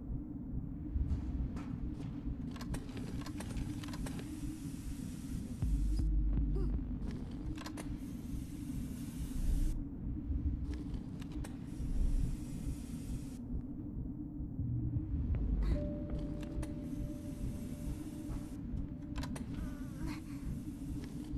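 A wooden crate scrapes as it is pushed across a metal floor.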